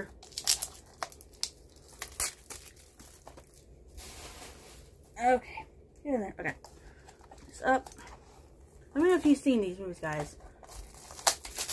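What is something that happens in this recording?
A plastic case clicks and rustles in a woman's hands.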